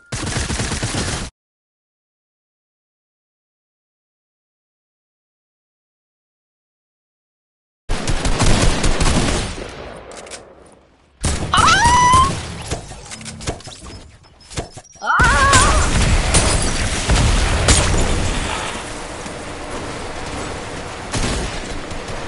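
Video game gunfire and effects crackle loudly.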